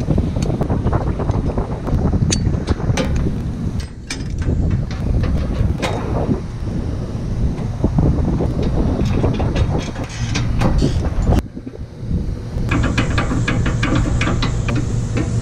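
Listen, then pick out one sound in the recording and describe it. Wind buffets loudly high on an exposed tower.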